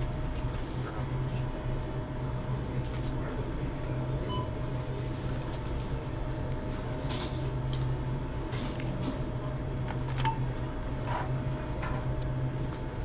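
Paper rustles and crinkles close by.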